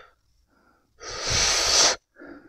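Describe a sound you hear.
A man blows out a long puff of breath.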